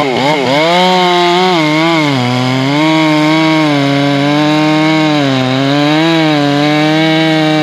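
A chainsaw engine revs up and down loudly close by.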